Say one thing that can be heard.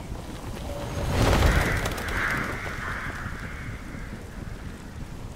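A burst of flames roars and whooshes.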